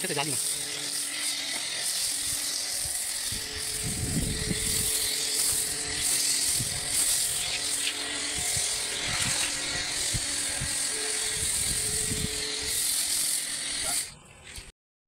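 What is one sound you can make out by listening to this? A foam lance on a pressure washer hisses as it sprays foam onto a car.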